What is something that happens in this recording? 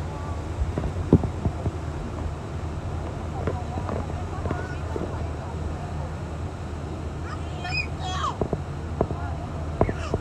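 A waterfall roars.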